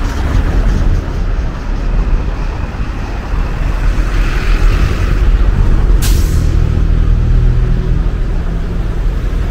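A bus engine rumbles as it passes close by.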